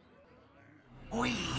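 A game plays a bright magical chime as a card is played.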